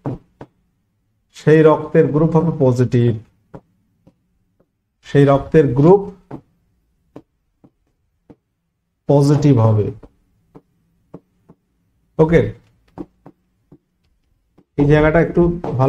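A man speaks animatedly into a close microphone, in short bursts with pauses.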